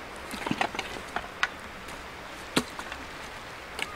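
Dry sticks snap and crack as they are broken.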